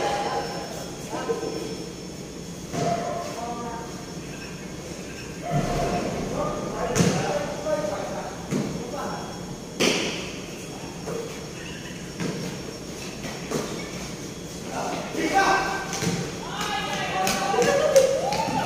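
A basketball bounces on a hard floor with echoing thuds.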